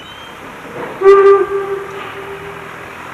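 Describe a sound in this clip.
A steam locomotive whistle blows shrilly in the distance.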